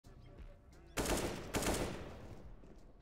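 A rifle fires a few loud shots.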